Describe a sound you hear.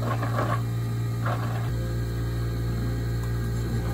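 Coffee pours from a small jug.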